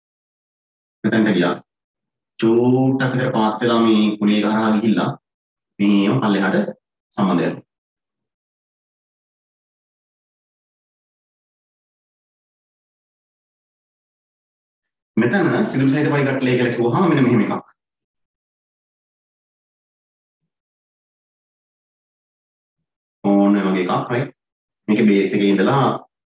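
A man speaks calmly, close to a microphone, in short bursts with long pauses.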